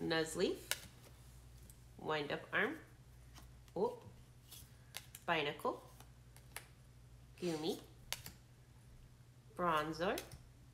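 Trading cards flick and slap softly as they are handled one by one.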